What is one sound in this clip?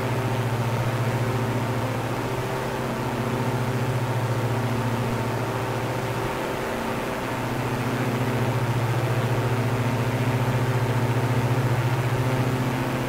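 Propeller engines drone steadily with a low hum that swells and eases slightly.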